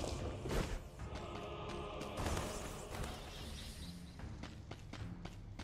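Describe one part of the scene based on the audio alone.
Quick footsteps patter as a figure runs.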